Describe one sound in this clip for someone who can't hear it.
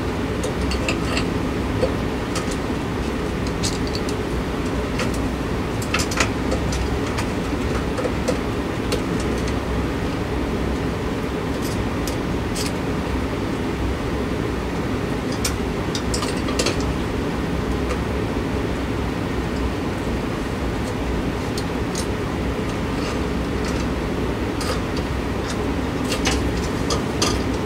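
Several ceiling fans whir and hum steadily.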